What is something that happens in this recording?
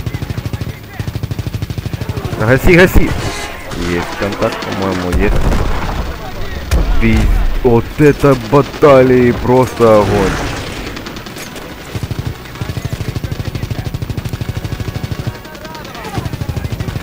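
A fighter plane's wing-mounted machine guns fire in rapid bursts.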